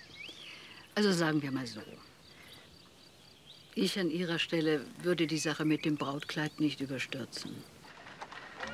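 An older woman speaks calmly and with feeling, close by.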